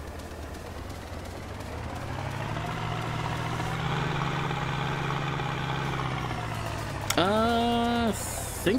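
A loader's diesel engine hums steadily and revs up.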